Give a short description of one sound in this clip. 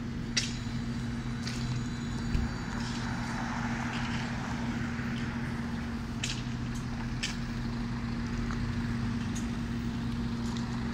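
An electric trolleybus hums as it drives past and away.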